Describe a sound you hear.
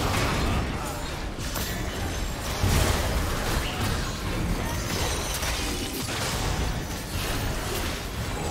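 Spell effects crackle and burst in a fast game fight.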